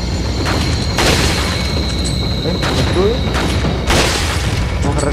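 A shotgun fires loud blasts with a booming echo.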